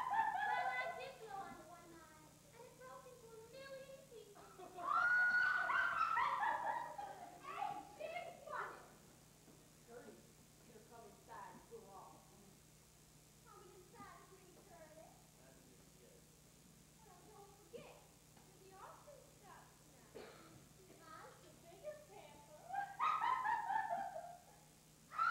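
Women speak with animation on a stage, heard from a distance in a large hall.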